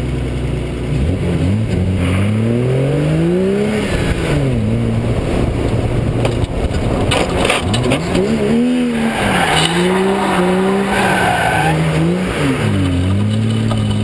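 A car engine revs up and down hard.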